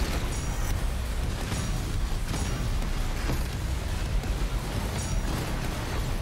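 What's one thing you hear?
Fire roars in loud bursts.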